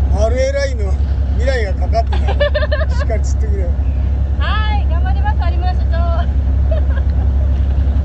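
A young woman talks and laughs cheerfully close by.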